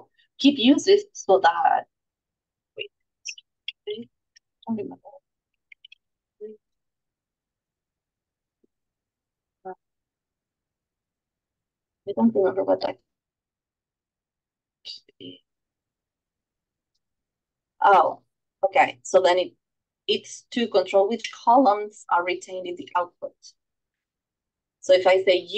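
A woman talks calmly into a microphone, in bursts with pauses.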